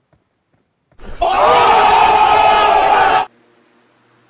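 A crowd of young people cheers and shouts loudly.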